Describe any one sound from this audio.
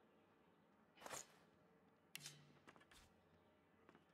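A game menu gives short soft clicks and whooshes.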